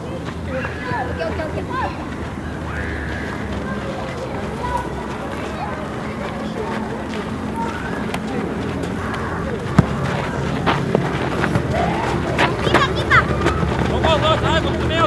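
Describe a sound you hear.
Children shout and call out across an open field, heard from a distance.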